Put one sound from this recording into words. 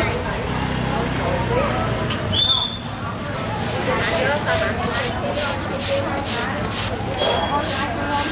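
A vegetable is grated in quick, regular strokes.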